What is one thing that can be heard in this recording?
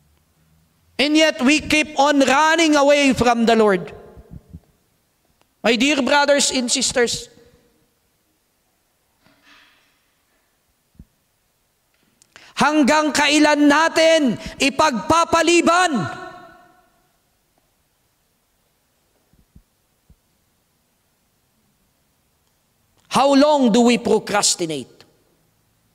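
A man preaches with animation into a microphone in a large echoing hall, in bursts with long pauses.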